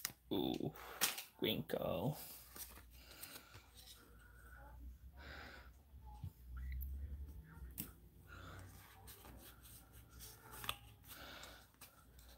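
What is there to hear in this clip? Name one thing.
Trading cards rustle and slide as hands shuffle them.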